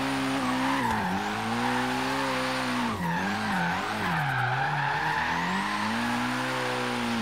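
Tyres screech steadily as a car drifts.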